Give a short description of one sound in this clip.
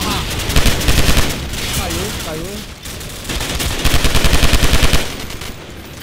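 A gun fires in rapid bursts of shots.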